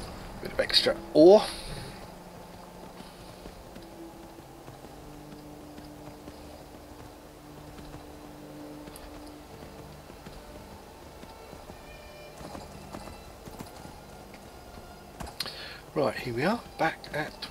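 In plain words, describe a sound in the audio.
A horse's hooves clop along a stone path at a trot.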